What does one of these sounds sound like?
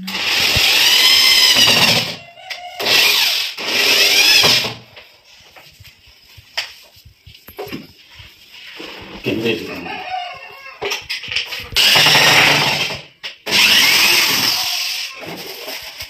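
A power drill whirs in short, loud bursts.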